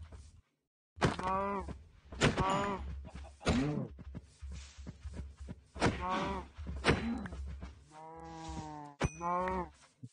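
A sword strikes animals with repeated sharp hits.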